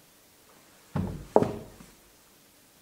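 A body thumps onto a wooden floor.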